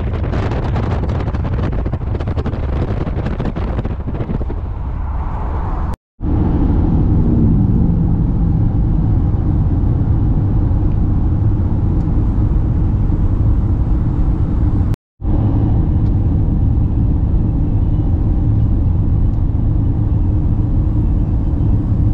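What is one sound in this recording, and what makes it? Tyres hum and rumble steadily on a motorway, heard from inside a moving car.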